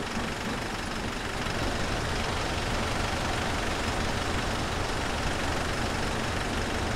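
A diesel bus engine idles.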